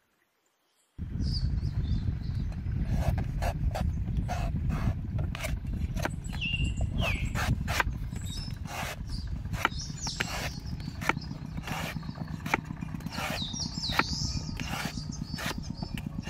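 A cleaver chops into a coconut with sharp knocks.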